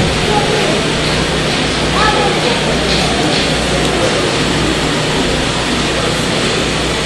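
A crowd of voices fills a large echoing hall.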